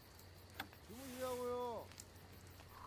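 A man speaks quietly.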